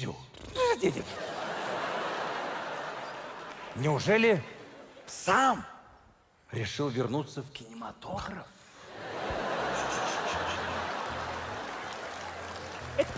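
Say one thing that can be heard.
An audience laughs and applauds in a large hall.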